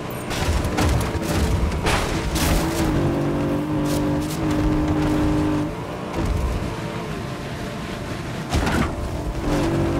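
Tyres crunch and skid over rough ground.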